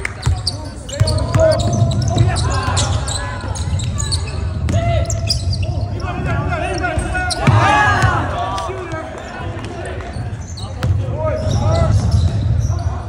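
Teenage boys call out to each other in a large echoing hall.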